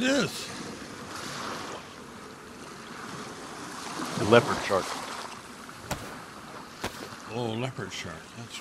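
Young men talk with animation over a microphone.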